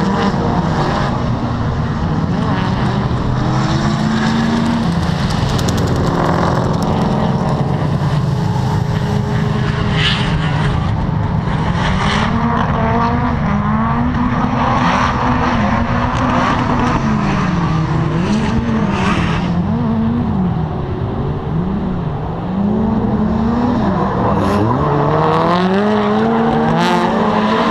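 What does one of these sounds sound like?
Car engines rev up and down loudly in bursts, outdoors.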